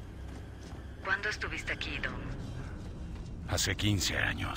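A young woman talks into a close microphone.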